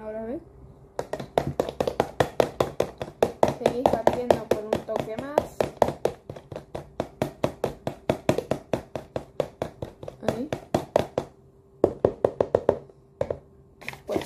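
A fork beats eggs rapidly in a plastic container.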